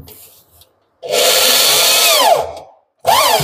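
An electric drill whirs loudly in short bursts, winding down between them.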